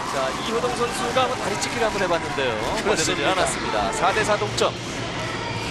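A large crowd cheers and bangs clappers loudly in an echoing hall.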